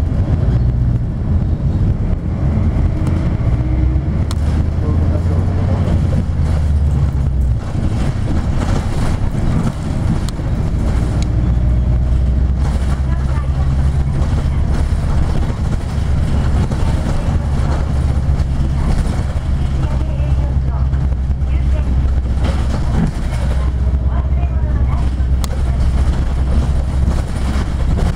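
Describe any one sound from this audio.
A vehicle's engine rumbles steadily as it drives along a road.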